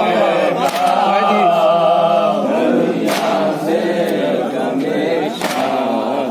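Several adult men murmur and talk at once.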